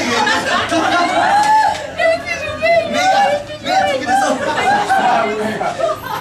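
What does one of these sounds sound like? A television loudspeaker plays an excited commentary.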